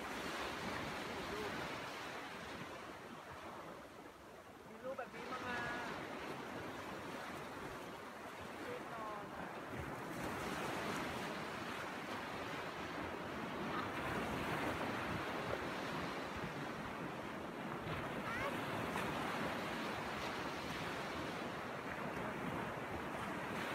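Waves wash and break steadily on a beach.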